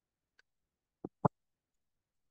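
Metal pliers click against a small metal ring.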